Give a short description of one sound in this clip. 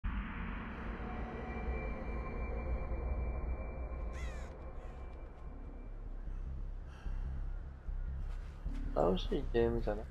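Footsteps shuffle over sandy ground.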